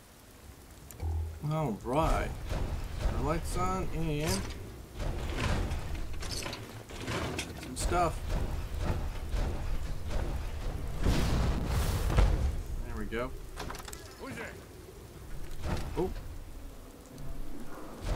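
Heavy armoured footsteps thud on the ground.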